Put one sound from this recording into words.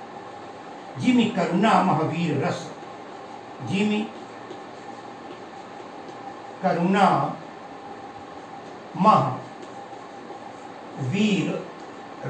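An elderly man speaks slowly in short phrases, close by.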